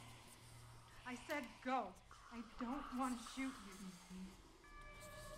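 A young woman speaks nervously and pleadingly close by.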